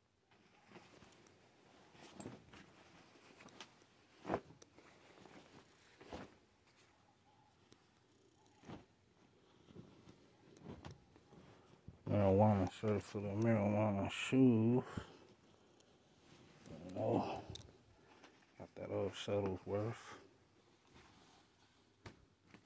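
Cloth rustles and shuffles as garments are handled and moved.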